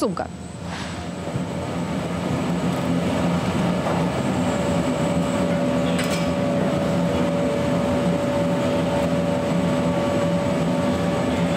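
A baggage conveyor runs with a steady mechanical hum and rumble.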